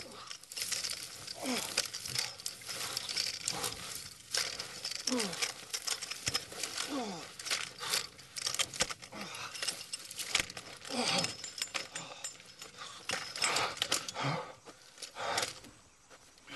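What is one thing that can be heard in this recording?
A metal walking frame clatters and scrapes on the ground.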